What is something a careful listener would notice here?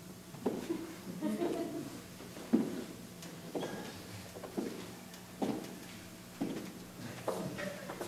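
A young man sings in a large echoing hall.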